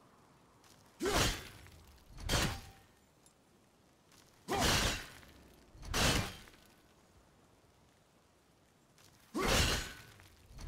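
An axe strikes a heap of coins with loud, crashing blows.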